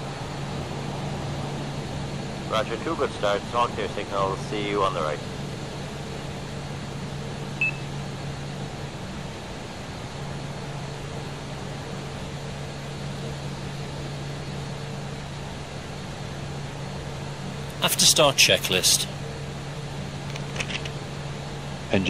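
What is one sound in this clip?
Jet engines hum steadily in a low drone.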